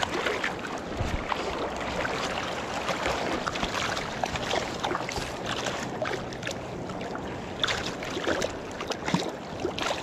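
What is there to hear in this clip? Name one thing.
Water splashes as a fish thrashes in a landing net.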